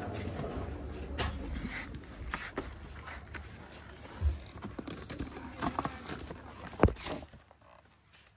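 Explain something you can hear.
A shopping cart rattles as it rolls over a hard floor.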